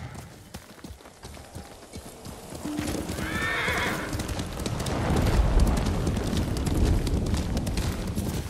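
Horse hooves thud on a dirt path at a gallop.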